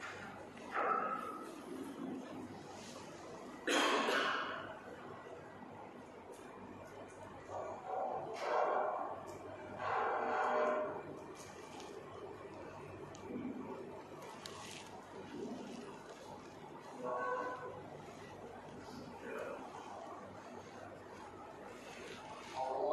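A man speaks slowly and calmly into a microphone, with pauses.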